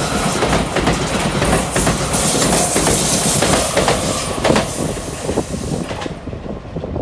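A train rushes past close by with a loud roar.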